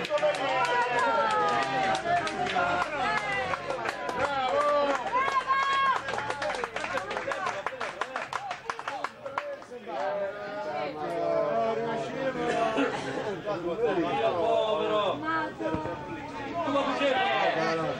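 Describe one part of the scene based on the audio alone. Male spectators shout close by.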